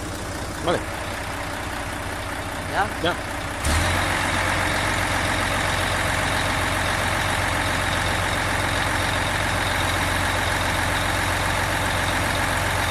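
A diesel truck engine idles steadily.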